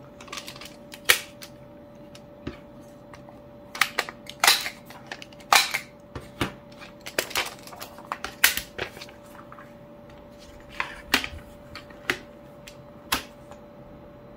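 A plastic hole punch clicks and clunks as it is moved and pressed.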